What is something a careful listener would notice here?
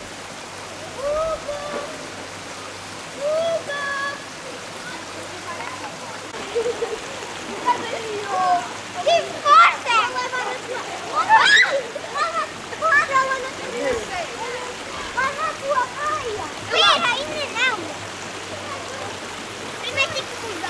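Children shout and call out nearby outdoors.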